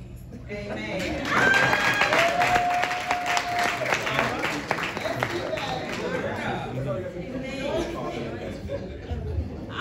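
A middle-aged woman speaks into a microphone through loudspeakers.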